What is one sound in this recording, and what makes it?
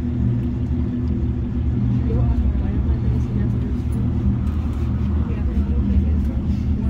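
A cable car's machinery hums and rumbles steadily as it travels along its cable.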